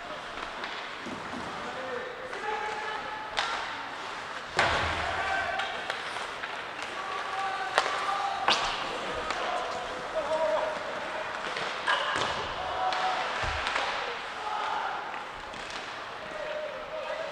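Players shout to each other across the rink.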